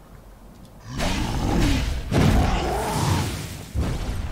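Magic blasts crackle and roar in a video game battle.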